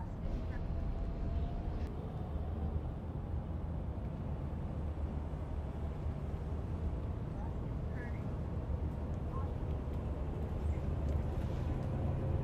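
A bus engine hums and rumbles steadily.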